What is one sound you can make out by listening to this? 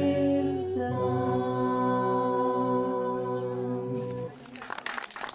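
Folk instruments play a steady droning tune.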